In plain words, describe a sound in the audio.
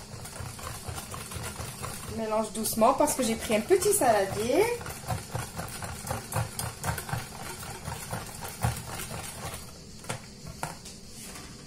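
A whisk clinks rapidly against a plastic bowl while beating a batter.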